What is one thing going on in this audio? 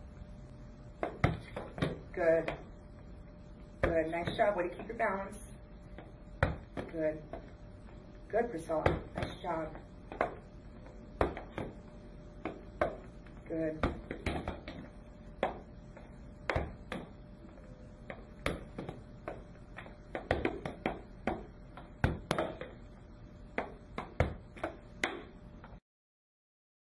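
A wooden rocker board knocks against the floor as it tips from side to side.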